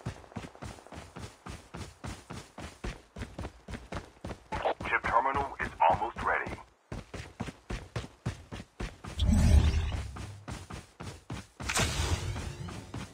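Footsteps run quickly and steadily over grass and dirt.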